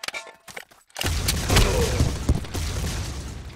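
A grenade explodes with a loud, rumbling boom.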